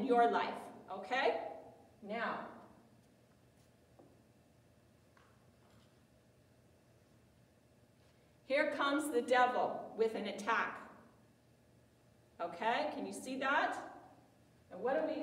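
An older woman speaks with animation, close by.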